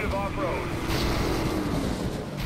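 A car crashes with a loud smash.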